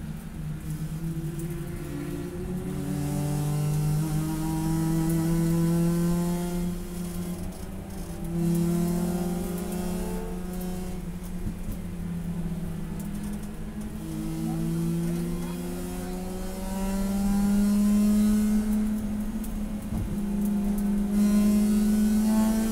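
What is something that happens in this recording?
A car engine roars loudly from inside the cabin, its pitch rising and falling through the gear changes.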